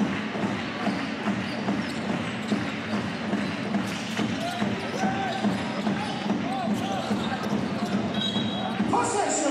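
A basketball bounces rhythmically.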